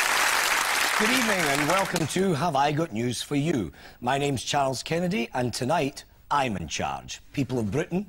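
A man speaks clearly into a microphone, addressing an audience.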